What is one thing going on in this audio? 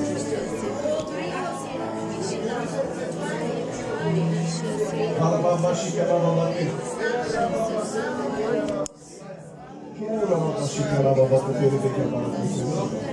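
A crowd sings together loudly in a large echoing hall.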